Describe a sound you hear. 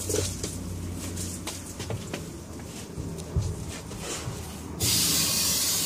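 A stiff plastic sheet crinkles and rustles as it is handled.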